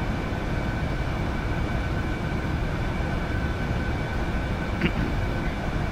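An aircraft engine drones steadily inside a cockpit.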